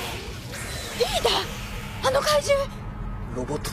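A young woman speaks urgently.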